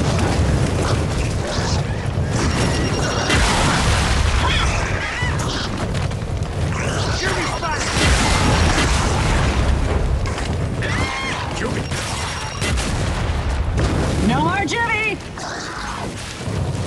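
Heavy gunfire rattles continuously.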